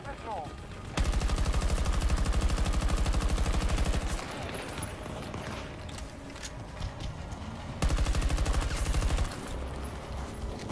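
A heavy gun fires in a rapid, rattling burst.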